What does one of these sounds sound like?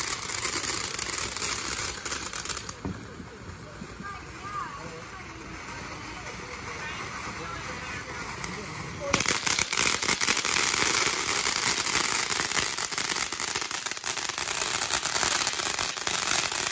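A firework fountain hisses and crackles loudly outdoors.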